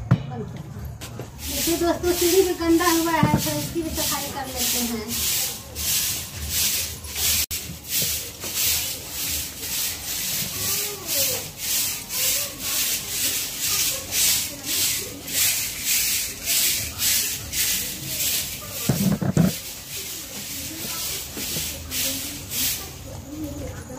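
A broom sweeps stone steps in quick, rhythmic strokes.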